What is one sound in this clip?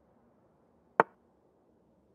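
A single sharp click sounds as a chess piece is moved.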